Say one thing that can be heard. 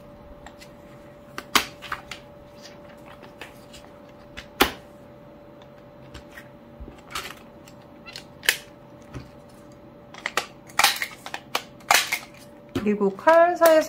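Sheets of paper rustle and slide against each other.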